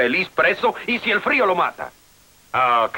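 A man speaks tensely and angrily, close by.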